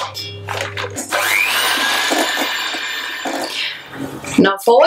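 An electric hand mixer whirs in a metal bowl.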